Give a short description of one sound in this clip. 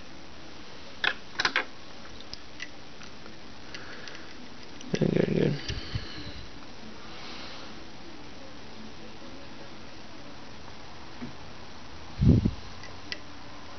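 A small metal tool clicks and taps softly.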